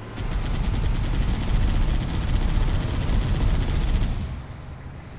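A vehicle-mounted machine gun fires in rapid bursts.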